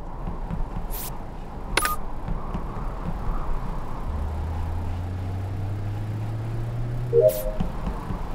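A game's interface clicks sharply.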